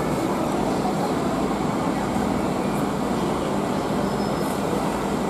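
A bus engine hums steadily as the bus drives slowly past.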